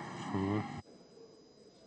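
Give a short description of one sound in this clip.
A woman speaks briefly into a microphone.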